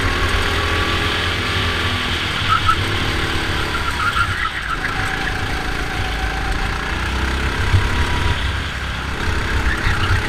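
A small kart engine buzzes loudly and steadily close by, its pitch rising and falling.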